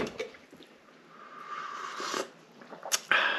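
A man slurps from a mug.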